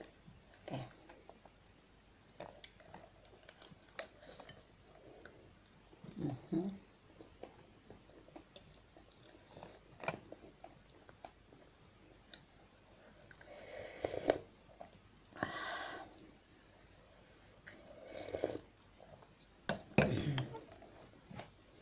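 Cutlery clinks against a plate.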